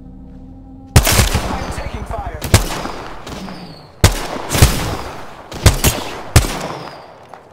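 Rifle shots crack loudly, one after another, each with a short ringing echo.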